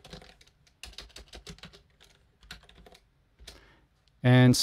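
Keyboard keys tap and click softly.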